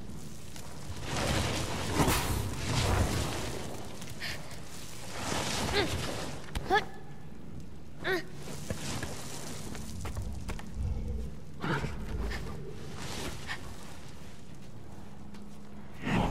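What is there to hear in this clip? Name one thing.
Hands grip and scrape against stone while climbing.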